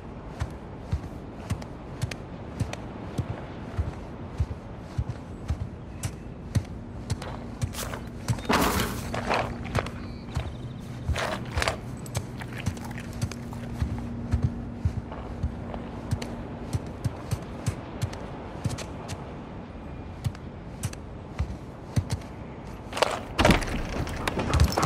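Footsteps tap steadily across a wooden floor.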